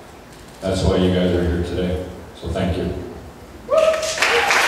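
A man speaks loudly through a microphone in an echoing room.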